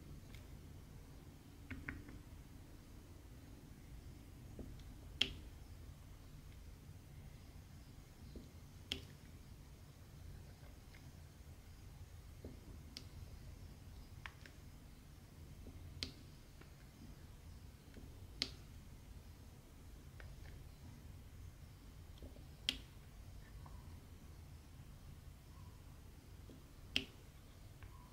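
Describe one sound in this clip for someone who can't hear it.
A pen tool taps and clicks lightly and sharply, now and then.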